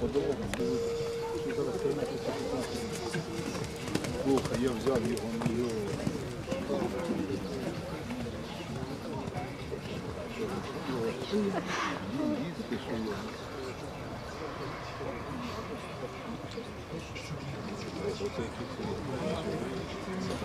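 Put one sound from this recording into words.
A horse canters with thudding hooves on soft sand.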